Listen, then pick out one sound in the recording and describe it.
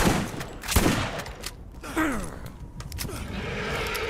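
A gun is reloaded with a metallic clack.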